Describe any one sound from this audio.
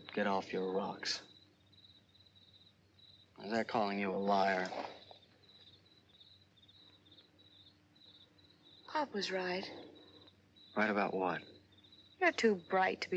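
A young man speaks softly and warmly, close by.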